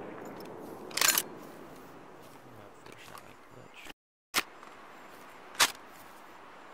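A rifle bolt clacks as it is worked.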